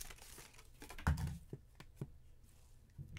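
A card taps lightly on a hard surface.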